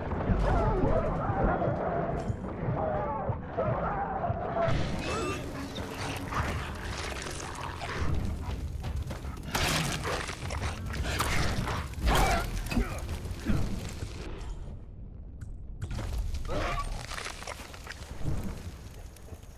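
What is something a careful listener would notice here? A torch fire crackles.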